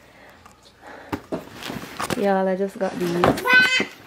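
Cardboard boxes knock and scrape as they are moved.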